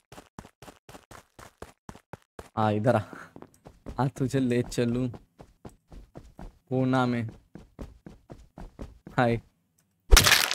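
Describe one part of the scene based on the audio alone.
Quick light footsteps tap steadily.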